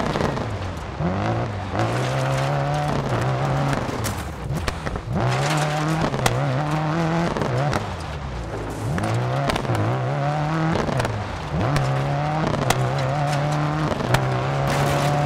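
Tyres crunch and slide on gravel.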